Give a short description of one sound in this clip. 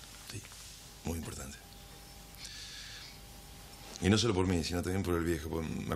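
A second man answers in a low, serious voice nearby.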